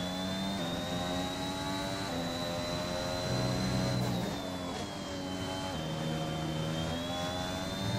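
A Formula One car's hybrid turbo V6 engine screams at high revs.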